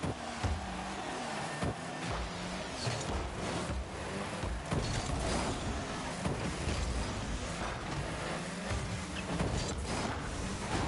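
A game car's engine hums and roars steadily throughout.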